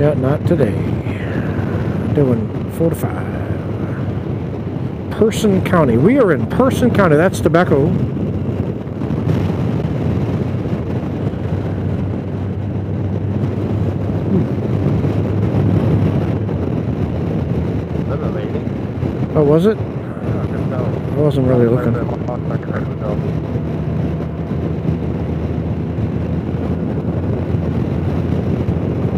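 Wind rushes steadily past a moving motorcycle.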